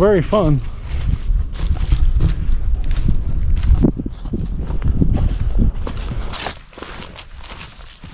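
Footsteps crunch through dry leaves on a trail.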